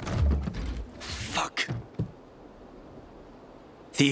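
A plastic crate lid bumps open.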